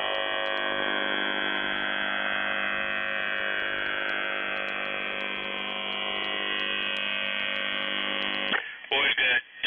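A radio receiver plays a steady, buzzing signal made of many tones.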